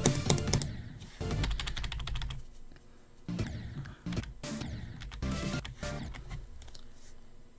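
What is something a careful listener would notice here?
Fast electronic game music plays with thumping beats.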